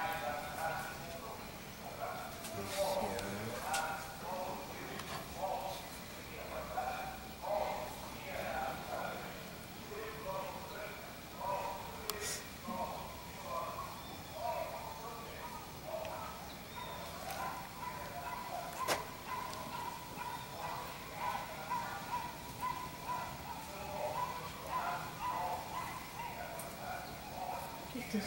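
A woman talks calmly close by.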